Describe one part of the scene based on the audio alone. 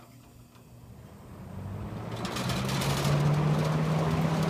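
An electric fan starts up and whirs, growing steadily louder.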